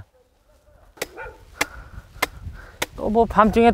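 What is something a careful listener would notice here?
A mallet knocks a metal stake into the ground with sharp taps.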